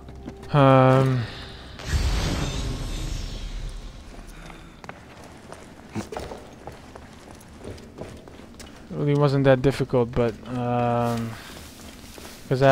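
Footsteps thud softly on wooden planks and dirt.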